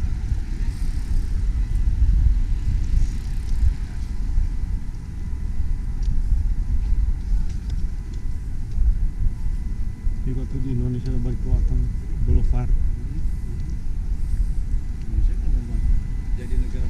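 Wind buffets the microphone with a steady low rumble outdoors.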